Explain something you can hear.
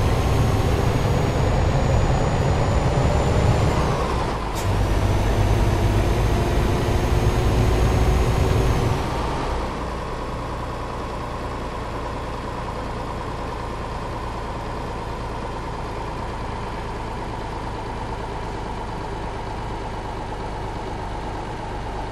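A truck engine drones steadily, loud at first and then quieter.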